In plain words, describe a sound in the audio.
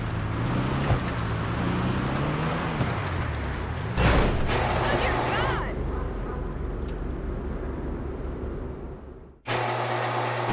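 A sports car engine revs as the car drives.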